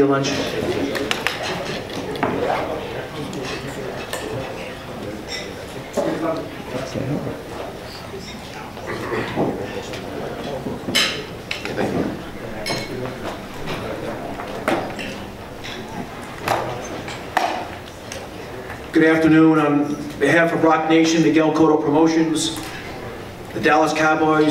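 An older man speaks calmly into a microphone, heard over loudspeakers.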